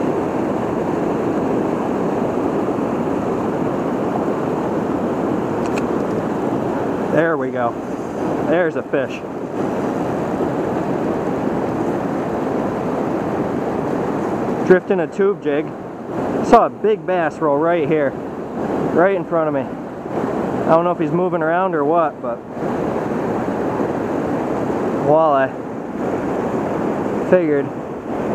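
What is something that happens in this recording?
Fast river water rushes and churns steadily outdoors.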